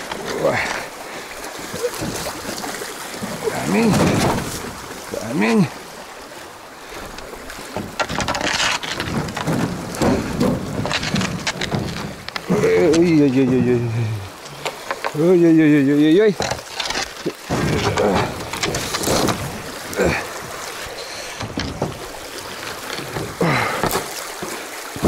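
A wooden pole splashes and knocks in the water.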